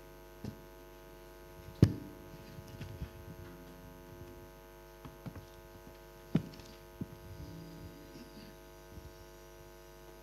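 A man speaks quietly near a microphone.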